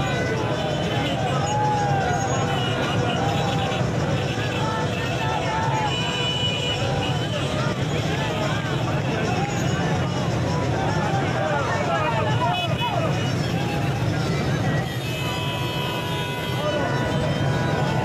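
Car horns honk repeatedly.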